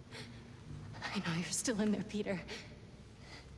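A young woman speaks urgently and close by.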